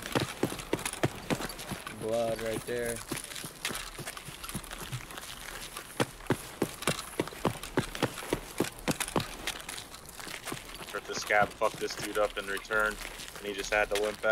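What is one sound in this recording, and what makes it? Footsteps crunch steadily on gravel.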